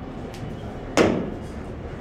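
A cue tip strikes a billiard ball with a sharp click.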